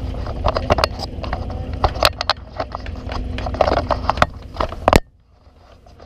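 Ice skates scrape across an outdoor rink.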